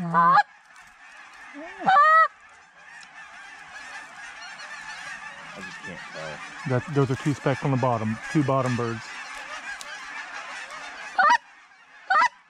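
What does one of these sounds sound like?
A large flock of geese honks and clamors overhead.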